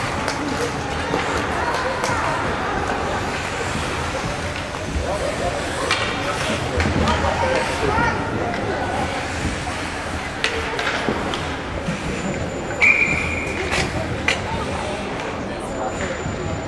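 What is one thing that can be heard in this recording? Young players shout to each other across an echoing rink.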